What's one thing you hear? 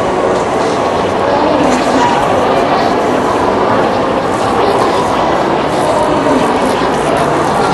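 A crowd of people chatters loudly all around in an echoing hall.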